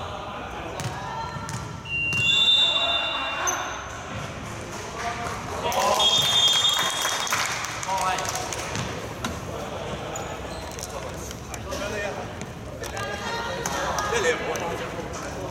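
Young men call out and talk loudly across the hall.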